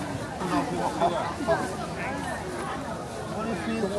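A middle-aged man talks with customers nearby.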